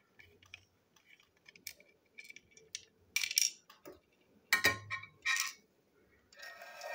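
Small plastic parts click and tap against a hard surface.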